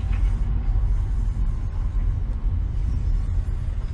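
A truck engine rumbles low and steadily nearby.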